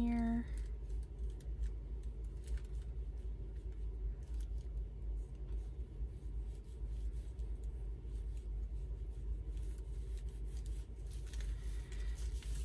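Paper rustles softly under rubbing hands.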